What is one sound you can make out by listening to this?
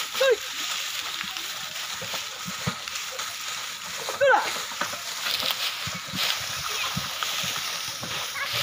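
Dry cane stalks crunch under the hooves of oxen.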